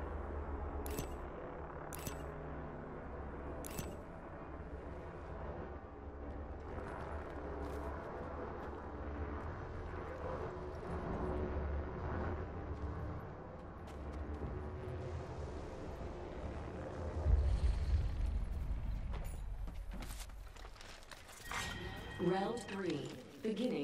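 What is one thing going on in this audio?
Footsteps thud quickly on wooden floors and grass.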